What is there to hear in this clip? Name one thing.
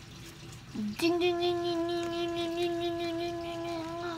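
A young girl sings a long, steady note close by.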